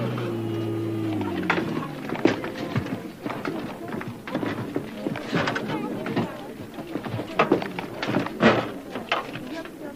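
Thumps and metal knocks sound on a truck.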